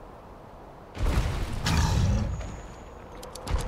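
A large creature lets out a loud, deep roar.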